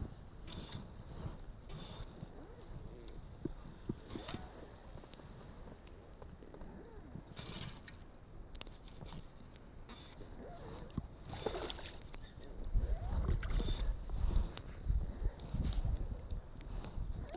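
A fishing line rasps as it is stripped by hand.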